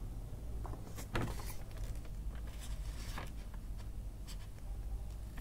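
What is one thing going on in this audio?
A plastic gift box crinkles and rustles as hands set it down on paper.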